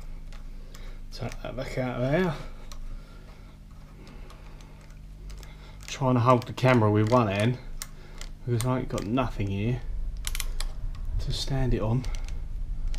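A metal tap wrench clicks and rattles against a metal machine panel.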